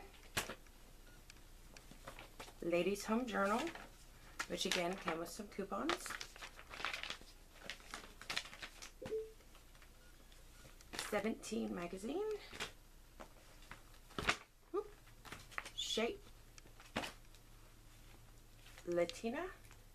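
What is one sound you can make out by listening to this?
Magazine pages rustle and flap as they are handled.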